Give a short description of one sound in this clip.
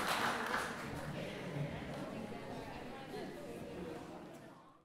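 An elderly woman talks quietly with a man nearby.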